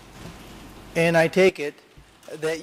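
An older man speaks into a microphone in a measured voice.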